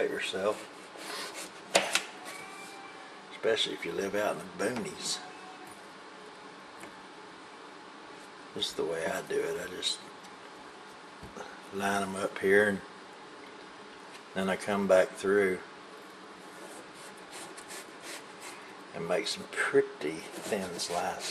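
A knife slices through a raw potato.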